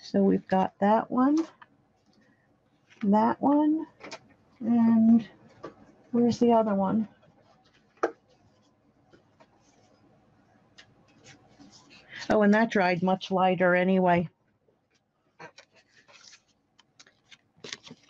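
Paper cards slide and tap softly onto a table.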